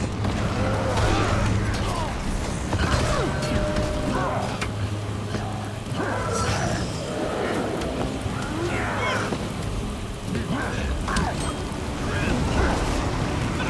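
Magic blasts and fiery bursts crackle during a fight.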